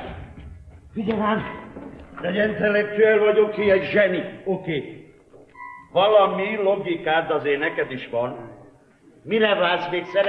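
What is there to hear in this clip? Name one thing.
An elderly man speaks loudly and with emotion.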